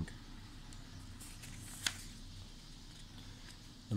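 A paper page is turned over.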